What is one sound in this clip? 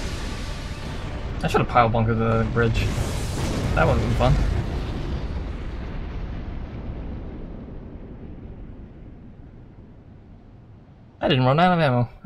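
A huge explosion booms and rumbles away slowly.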